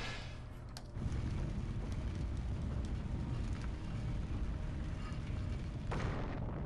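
A deep rumble shakes and grinds steadily.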